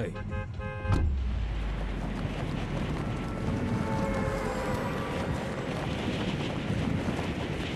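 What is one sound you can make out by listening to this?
Wind rushes steadily past a falling glider.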